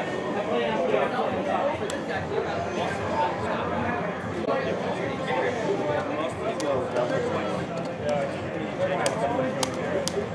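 A joystick rattles as it is pushed around.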